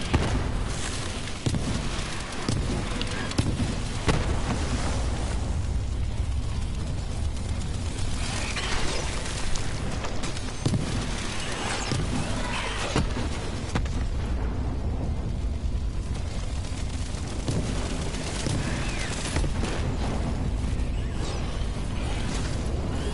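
Rapid gunfire crackles and bangs from a video game.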